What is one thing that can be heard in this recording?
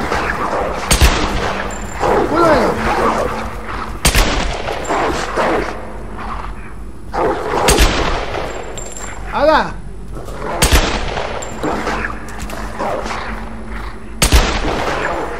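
A pistol fires sharp single shots.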